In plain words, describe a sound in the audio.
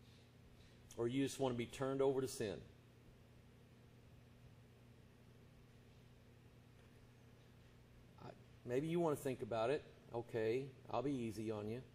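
A man speaks slowly and deliberately into a microphone, with long pauses.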